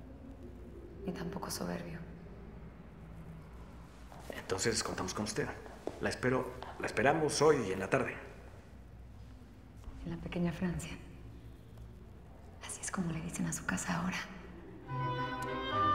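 A woman speaks softly and warmly nearby.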